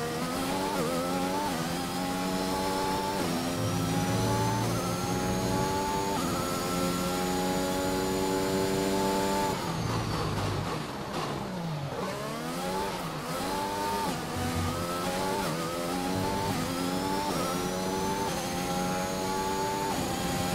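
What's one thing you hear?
A racing car engine screams at high revs, shifting up through the gears.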